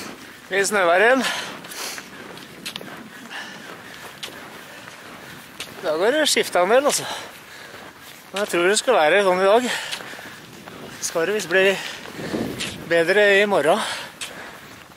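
A man laughs heartily up close.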